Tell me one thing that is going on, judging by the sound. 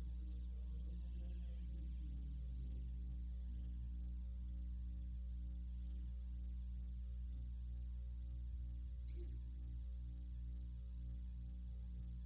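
A group of people recites together in unison, faint and distant.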